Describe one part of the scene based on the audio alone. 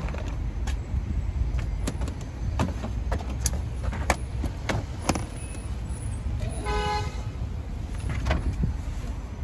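Suitcases knock and thump against a car boot as they are loaded.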